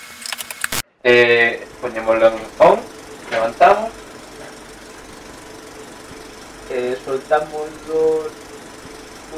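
A young man speaks calmly nearby.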